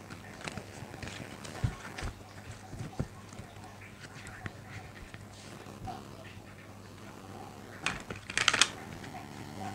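Playing cards shuffle and riffle softly in a pair of hands.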